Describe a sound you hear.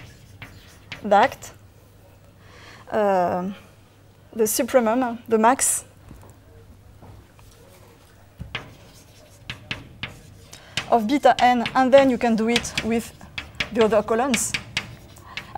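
A woman lectures calmly into a microphone in a large room, with pauses.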